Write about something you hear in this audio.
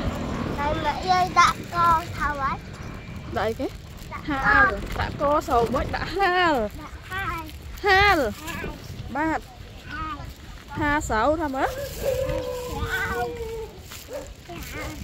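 A young child talks close by in a high voice.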